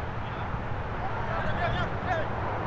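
Young men shout to each other across the field.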